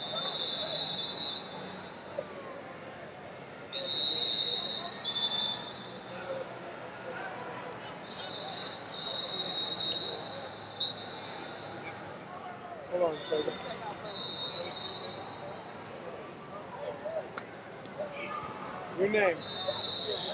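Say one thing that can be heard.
A large crowd murmurs and chatters throughout a big echoing arena.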